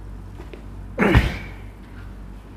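A loud thump sounds as a man drops forward onto another person.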